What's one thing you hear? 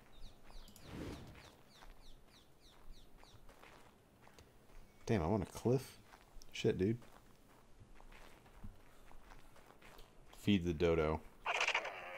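Footsteps rustle through tall grass.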